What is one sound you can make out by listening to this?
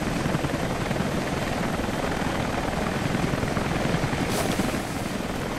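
A helicopter's rotor thuds loudly overhead.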